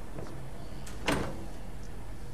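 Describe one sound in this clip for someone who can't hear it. A glass door is pushed open with a sharp knock.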